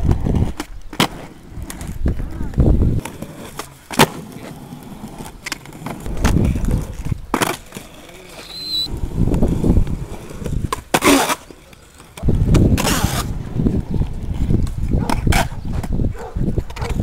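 A skateboard's tail snaps against concrete and the board clatters as it lands.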